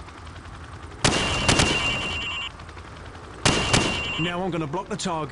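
A rifle fires rapid bursts of loud shots that echo.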